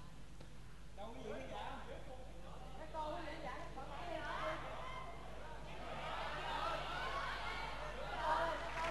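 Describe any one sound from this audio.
A crowd murmurs and calls out in the background.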